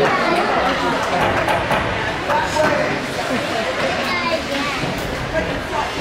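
Hockey sticks clack on the ice and puck.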